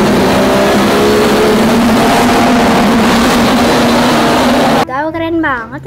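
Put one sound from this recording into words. An engine roars and revs loudly.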